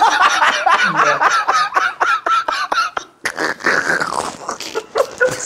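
A man laughs loudly in bursts, close to a microphone.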